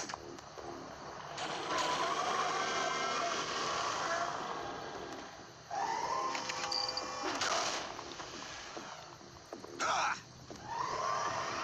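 A giant robot's machinery whirs and clanks.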